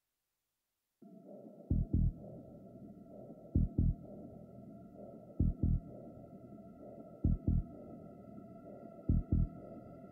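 Dark electronic dance music plays with a heavy, pounding kick drum.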